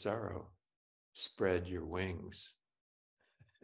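An elderly man speaks warmly through an online call.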